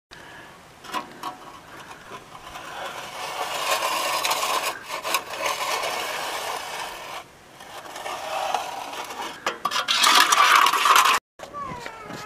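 A steel trowel scrapes and smooths wet render.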